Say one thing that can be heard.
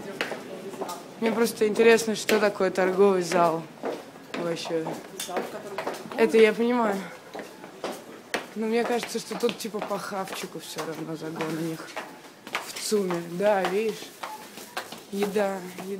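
Footsteps tap on stone stairs.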